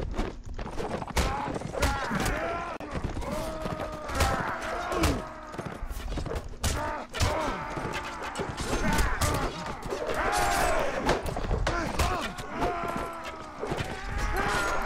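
Swords and shields clash and clang again and again.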